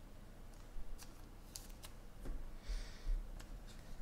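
Foil card packs crinkle and rustle in a hand.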